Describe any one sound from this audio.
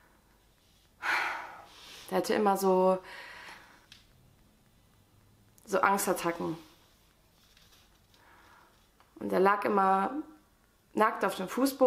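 A young woman speaks calmly and close to a microphone, in short bursts with pauses.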